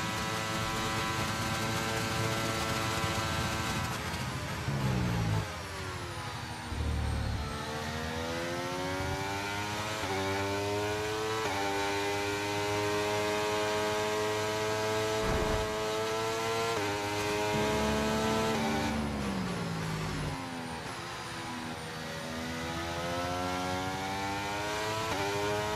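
A racing car engine whines loudly, rising and dropping in pitch as the gears shift.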